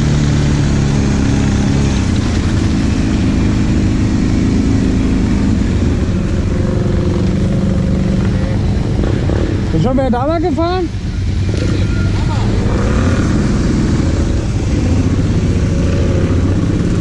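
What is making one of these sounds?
A quad bike engine roars close by, steady and loud.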